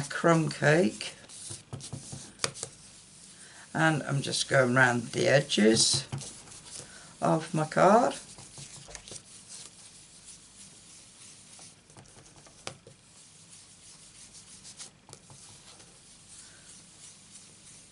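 A sponge dauber pats lightly on paper.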